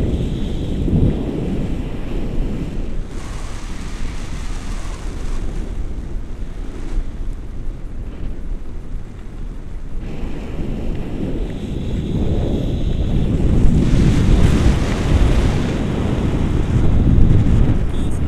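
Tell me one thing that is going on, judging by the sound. Wind rushes past a microphone in flight.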